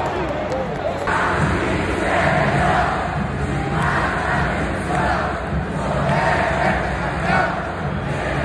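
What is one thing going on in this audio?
A large stadium crowd sings and chants loudly in unison, echoing outdoors.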